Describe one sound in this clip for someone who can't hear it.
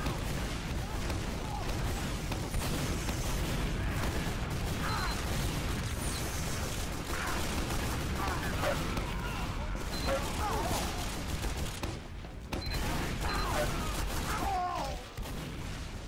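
A minigun roars in a long rattling burst.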